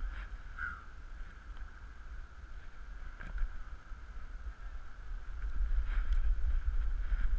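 Wind buffets outdoors with a low rumble, growing stronger.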